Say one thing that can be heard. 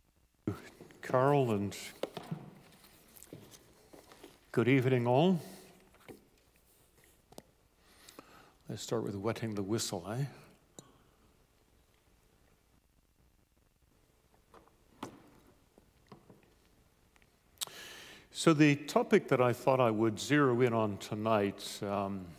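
A man speaks calmly through a microphone in a large echoing room.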